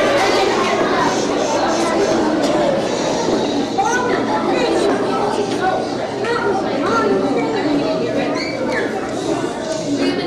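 A crowd of children chatters loudly in a large echoing hall.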